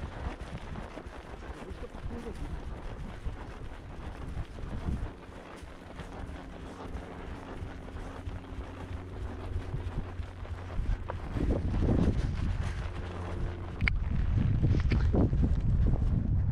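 Horse hooves thud steadily on soft grass.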